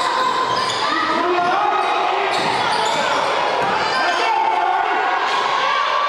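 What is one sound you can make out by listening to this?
A crowd of spectators chatters and calls out in a large echoing gym.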